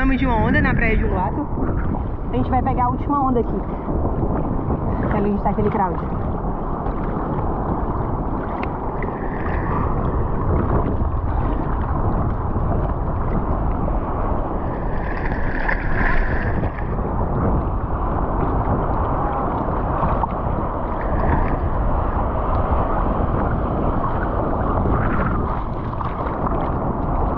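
Water laps and sloshes close by.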